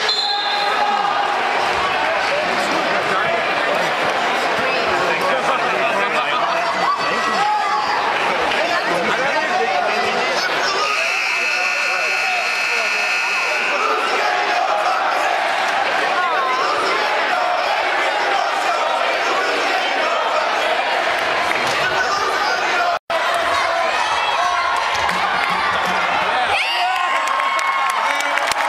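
A large crowd murmurs and cheers in an echoing gym.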